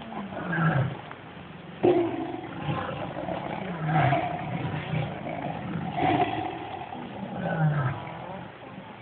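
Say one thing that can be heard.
Wild hogs grunt.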